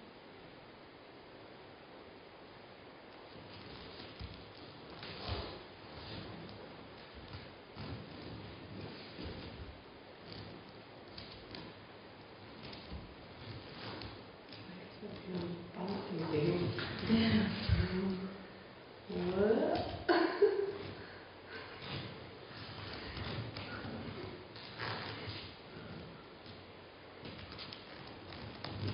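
Wooden puppet feet tap lightly on the floor.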